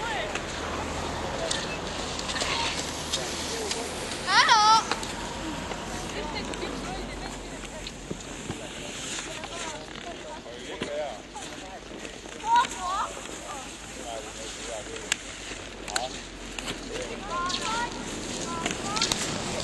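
Skis scrape and swish over packed snow as a skier glides past.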